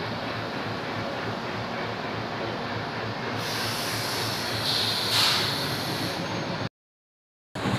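A freight train rumbles and rattles past close by.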